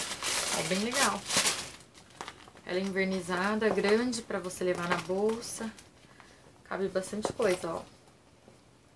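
A young woman talks close to a microphone, calmly and softly.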